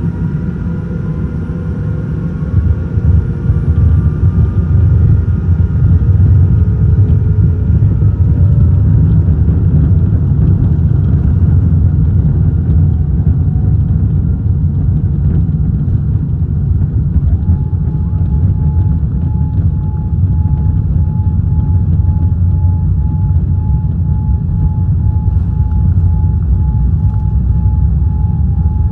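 Jet engines roar loudly as an airliner speeds down a runway.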